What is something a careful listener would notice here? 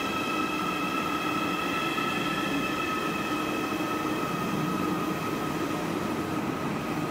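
A high-speed train glides slowly along the platform with a steady whine and rumble.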